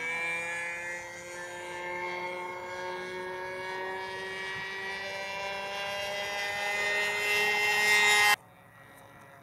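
A small propeller plane's engine drones overhead and grows louder.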